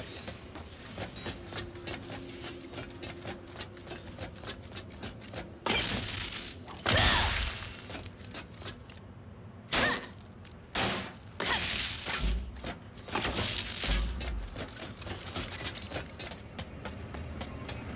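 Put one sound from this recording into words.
Rapid metallic footsteps clatter along a metal track.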